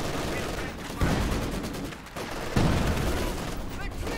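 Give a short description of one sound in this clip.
Loud explosions boom in a battle.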